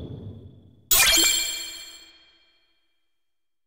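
A bright shimmering chime rings out as a reward pops up, then fades.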